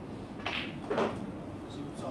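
Snooker balls knock together with a click.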